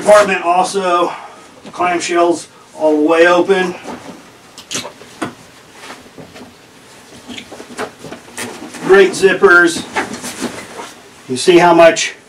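Fabric rustles as a backpack is handled.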